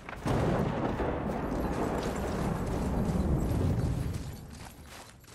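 Wind howls across an open mountainside.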